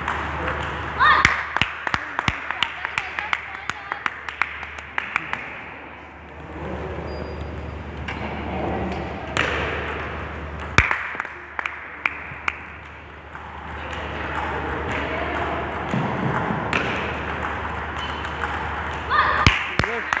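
A table tennis ball clicks quickly back and forth on paddles and a table in an echoing hall.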